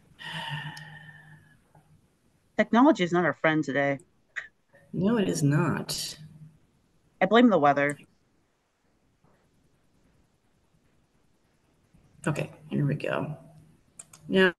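An elderly woman speaks calmly over an online call, in short phrases with pauses.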